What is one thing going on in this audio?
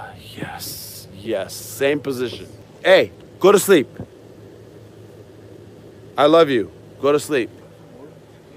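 A man speaks loudly and excitedly close by.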